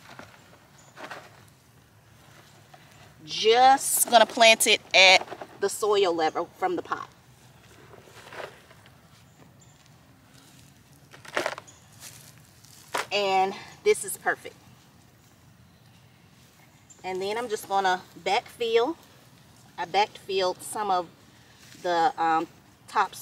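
Gloved hands scrape and pat loose soil.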